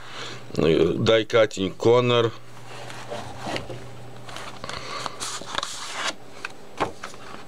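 Paper pages rustle as they are turned by hand.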